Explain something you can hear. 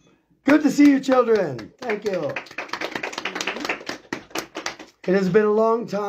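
A man claps his hands rapidly.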